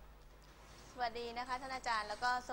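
A young woman speaks calmly and clearly to a room, close by.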